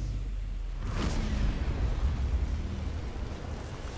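Flames roar loudly.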